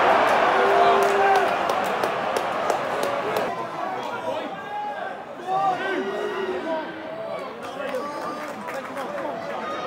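A large stadium crowd chants and cheers loudly in the open air.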